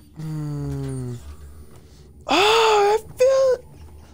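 A wooden cabinet door creaks open.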